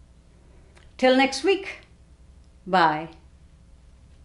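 A middle-aged woman speaks a few words calmly, close to the microphone.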